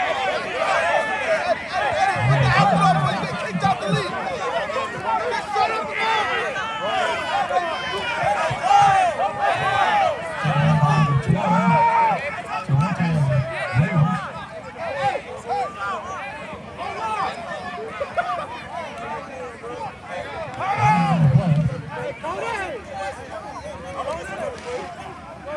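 A crowd of young men talks and shouts outdoors.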